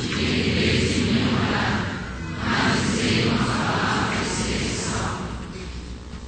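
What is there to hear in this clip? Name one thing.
A man chants slowly through a microphone in a large echoing hall.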